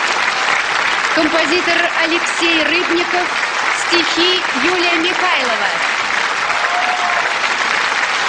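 Men and women in a large crowd cheer and shout.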